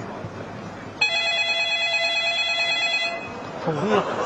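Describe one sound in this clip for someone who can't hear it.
A phone line rings with a steady electronic tone.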